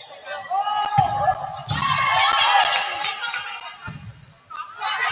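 A volleyball is struck with sharp thumps in a large echoing gym.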